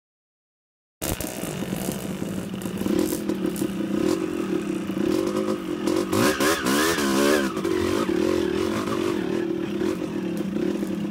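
A dirt bike engine revs and roars close by.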